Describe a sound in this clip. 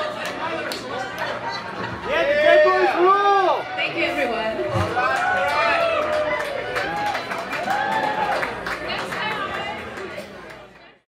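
A band plays loud rock music live.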